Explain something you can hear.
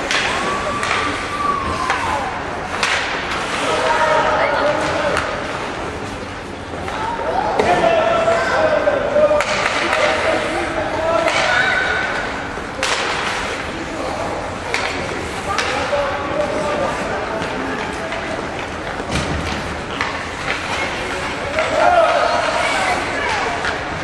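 Spectators shout in a large echoing arena.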